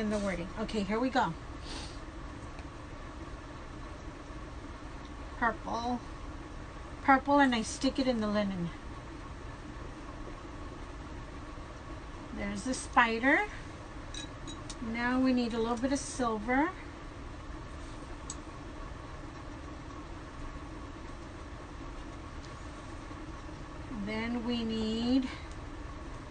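An elderly woman speaks calmly close by, in short bursts with pauses.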